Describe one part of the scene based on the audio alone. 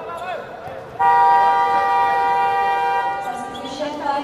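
A referee blows a long, steady whistle.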